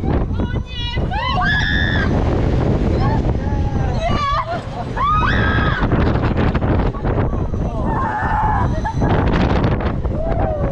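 Young riders scream with excitement, close by.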